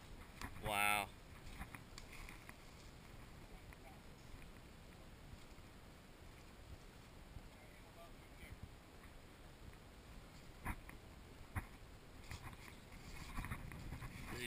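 Footsteps crunch and rustle through dry grass and brush outdoors.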